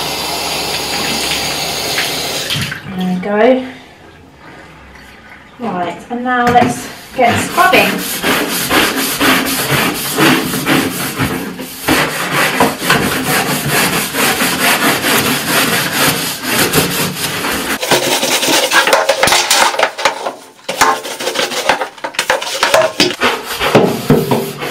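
A brush scrubs against tiles with quick rough strokes.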